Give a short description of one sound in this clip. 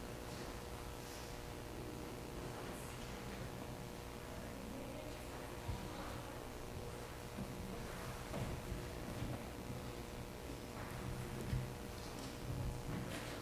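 A choir of boys sings softly in a large echoing hall.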